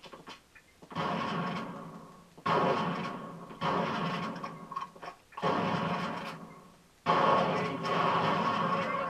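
Loud bursts of gunfire ring out in an echoing space.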